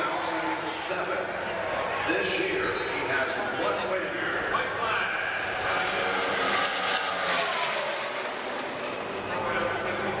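Race cars roar past at speed.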